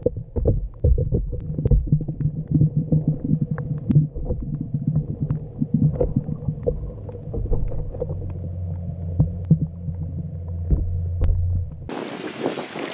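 Water surges and knocks, heard underwater.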